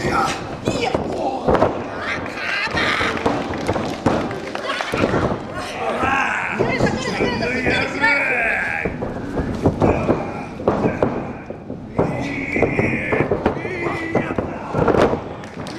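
Bodies slam heavily onto a springy wrestling mat.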